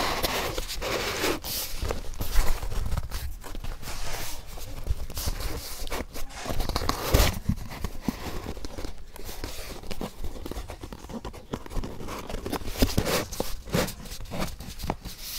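Cardboard creaks and rustles as a box is handled.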